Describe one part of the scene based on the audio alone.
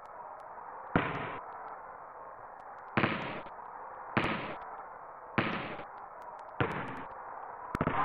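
A basketball bounces on a court in a retro video game.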